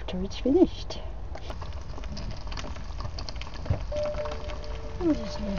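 Eggs and vegetables sizzle and crackle in a frying pan.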